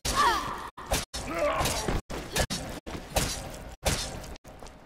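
Heavy blows thud and squelch against a creature.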